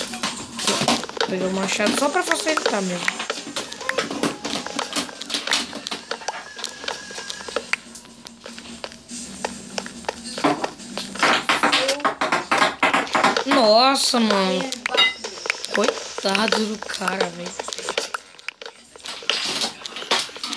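Wooden blocks are chopped and break with short knocking thuds.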